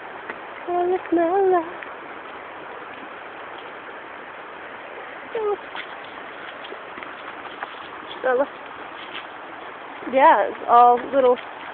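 A stream rushes over rocks nearby.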